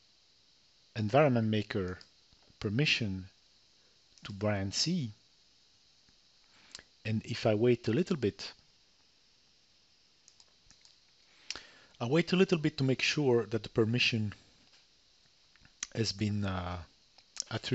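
A man talks calmly and up close into a microphone, with pauses.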